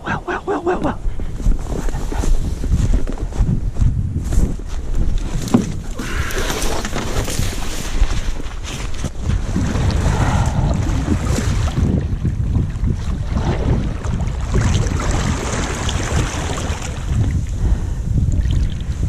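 Wind rumbles across an open lake.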